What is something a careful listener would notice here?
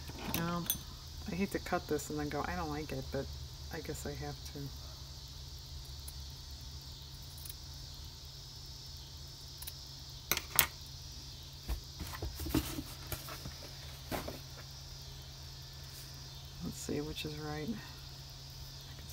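Lace and paper rustle softly as hands handle them.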